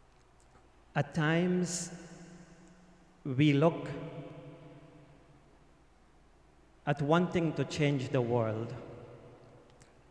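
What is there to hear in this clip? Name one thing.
A middle-aged man speaks slowly and solemnly into a microphone in an echoing room.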